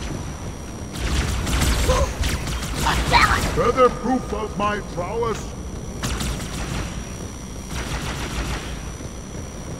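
Energy weapons fire in loud, crackling bursts.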